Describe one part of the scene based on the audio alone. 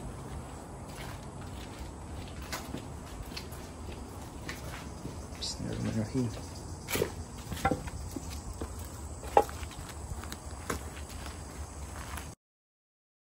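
Footsteps crunch on leaves and debris.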